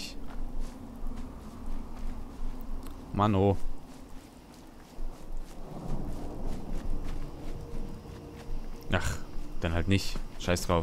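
Footsteps rustle quickly through dry grass.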